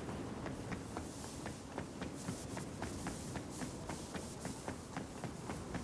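Quick footsteps run through dry grass.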